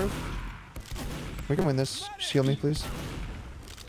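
A gun fires in short, sharp shots.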